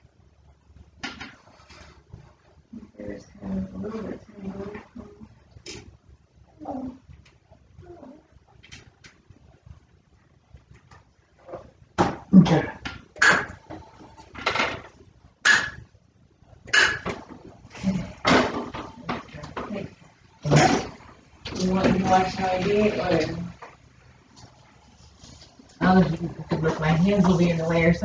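A woman talks casually close by.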